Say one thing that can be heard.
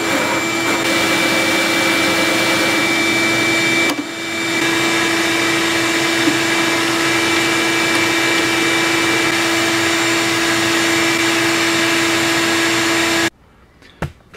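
A drill press whirs as a hole saw cuts into wood.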